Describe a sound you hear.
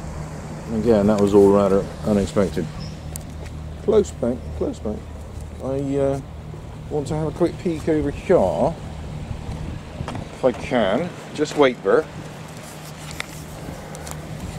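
Water laps gently against rocks.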